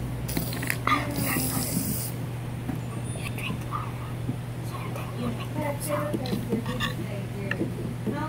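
A boy talks quietly close by.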